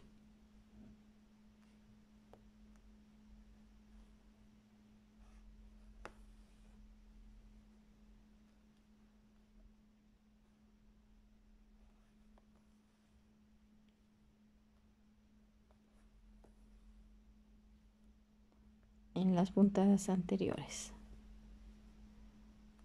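A needle pokes through taut fabric with faint ticks.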